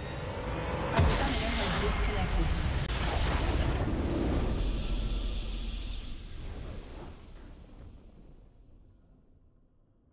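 A triumphant fanfare bursts out, swells and slowly fades.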